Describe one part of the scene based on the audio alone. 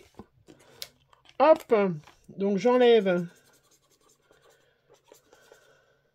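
Stiff paper cards rustle and slide as they are handled.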